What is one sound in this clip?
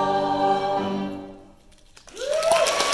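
A large choir holds a final sung note in a hall.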